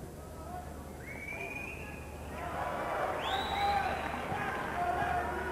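A referee's whistle blows shrilly.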